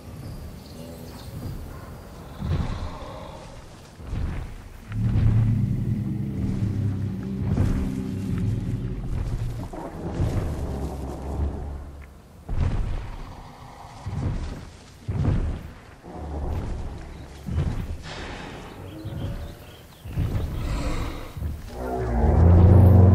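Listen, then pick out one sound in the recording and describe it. A huge animal's heavy footsteps thud on grass.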